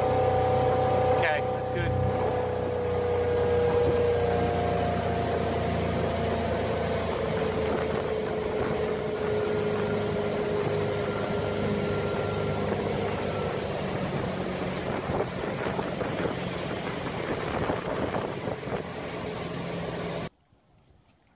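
A boat engine roars steadily at speed.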